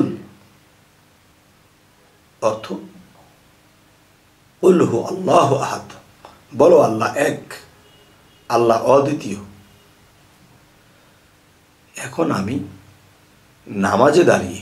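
A man speaks into a close microphone in measured, emphatic phrases with pauses.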